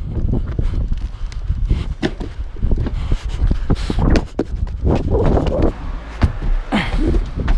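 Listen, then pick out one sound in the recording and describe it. Shoes land with heavy thuds on a hard roof.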